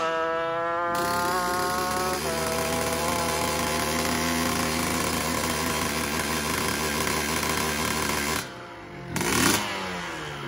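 A motorcycle engine revs loudly and roars at high pitch, outdoors.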